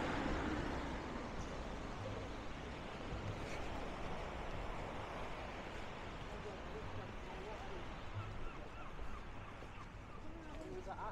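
Waves wash gently onto a beach.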